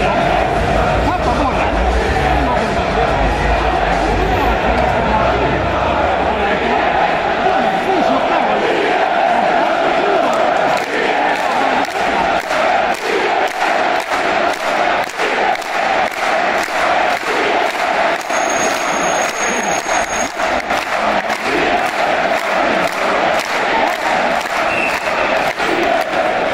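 A large crowd chants loudly in an echoing arena.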